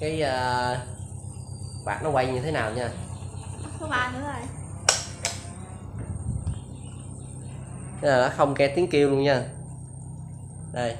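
A child talks close by.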